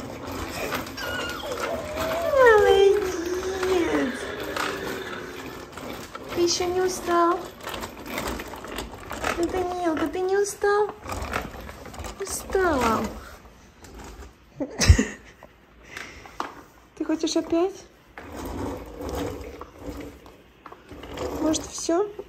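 A toddler babbles and squeals up close.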